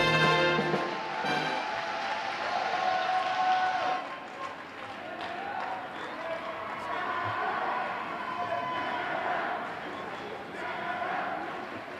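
A crowd cheers and chatters in a large echoing hall.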